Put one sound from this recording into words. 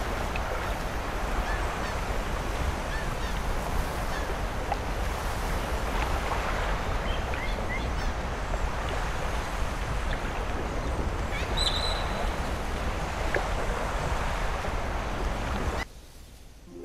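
Waves wash steadily onto a shore.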